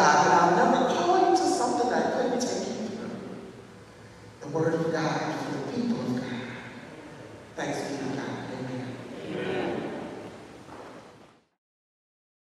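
A woman sings with feeling through a microphone in an echoing hall.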